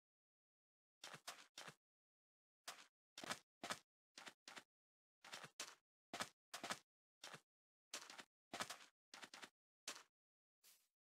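Footsteps crunch on sand.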